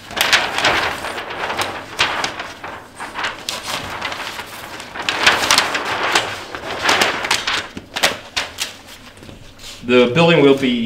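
Large sheets of paper rustle and crinkle as they are handled.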